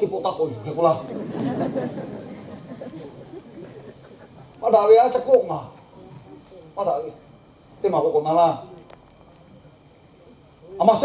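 A man speaks with emphasis into a microphone, heard through loudspeakers in a large echoing hall.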